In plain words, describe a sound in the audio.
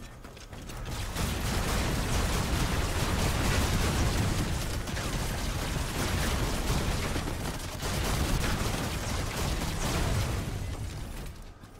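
Heavy weapons fire in rapid bursts.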